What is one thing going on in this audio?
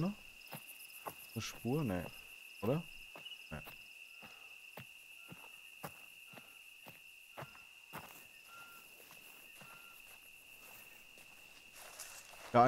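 Footsteps rustle through tall grass and leafy undergrowth.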